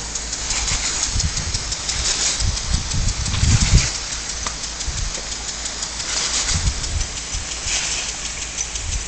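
A dog laps and snaps at a spray of water.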